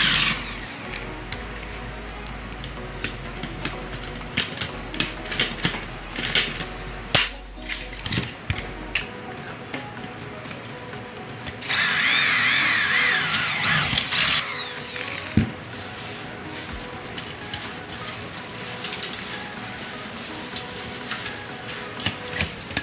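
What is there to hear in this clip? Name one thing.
Pliers click and snap against a metal frame.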